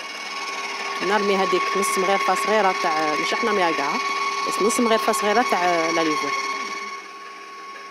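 A woman speaks with animation, heard close through a microphone.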